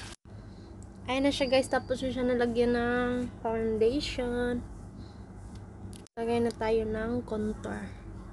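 A young woman sings softly close by.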